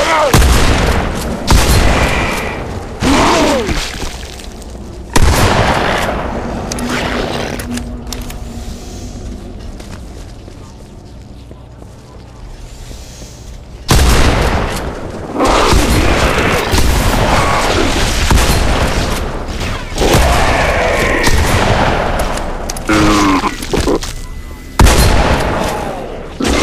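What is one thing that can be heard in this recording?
An automatic rifle fires in bursts.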